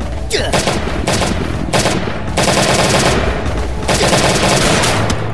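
Blows land with heavy fighting thuds.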